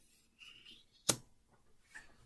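A playing card is laid down on a table with a soft tap.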